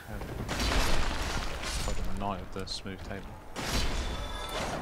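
A weapon strikes with a sharp crunch.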